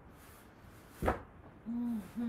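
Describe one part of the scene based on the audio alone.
A foam roller thumps onto the floor.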